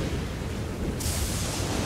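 A bolt of lightning strikes with a loud crackling boom.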